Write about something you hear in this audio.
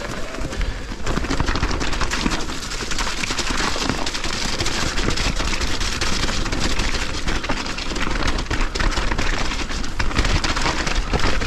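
A bicycle's frame and chain clatter over bumps.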